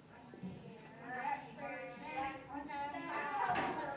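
A young girl speaks clearly and loudly in an echoing hall.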